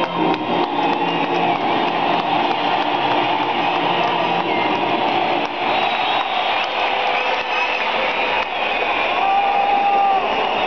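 A large stadium crowd murmurs and cheers in a wide open space.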